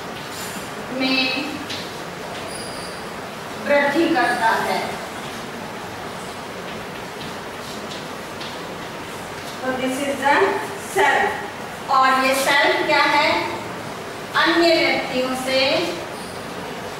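A woman speaks calmly in short phrases, close by.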